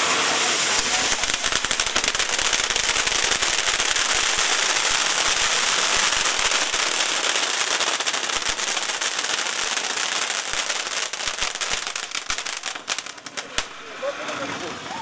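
Firework sparks crackle and pop sharply.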